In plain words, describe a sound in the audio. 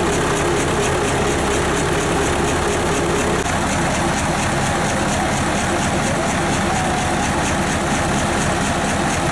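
A large diesel engine runs loudly with a steady, rapid knocking.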